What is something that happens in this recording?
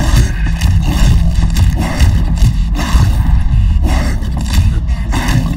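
Heavy blows thud and flesh splatters wetly, again and again.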